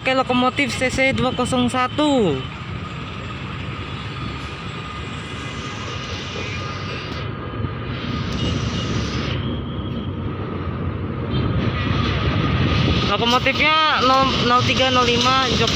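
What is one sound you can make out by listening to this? A diesel locomotive horn blares loudly in long blasts.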